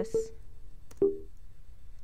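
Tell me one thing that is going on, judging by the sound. A soft click sounds once.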